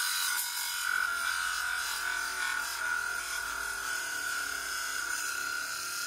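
A sanding disc grinds against wood with a steady, high whine.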